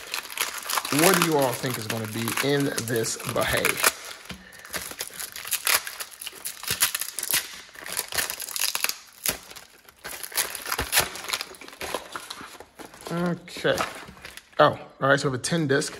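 Plastic wrapping crackles as it is handled.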